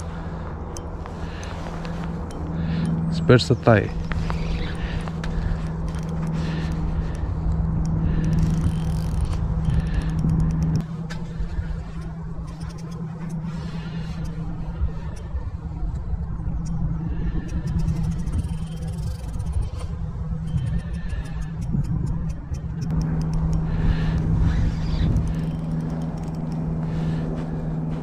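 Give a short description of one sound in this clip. A fishing reel whirs softly as its handle is turned.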